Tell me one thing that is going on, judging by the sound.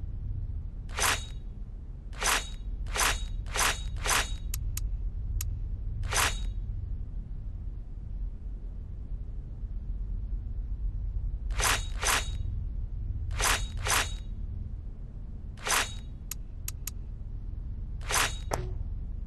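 Menu clicks tick sharply, one after another.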